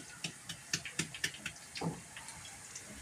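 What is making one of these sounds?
A plastic sieve knocks against a sink several times.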